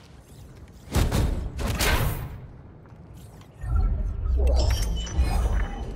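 A metal crate rattles and clanks open.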